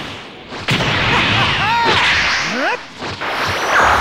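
A character screams while powering up.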